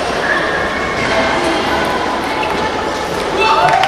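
A ping-pong ball clicks against paddles and the table in a quick rally.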